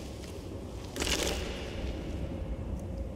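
A heavy stone lid scrapes open with a loud burst.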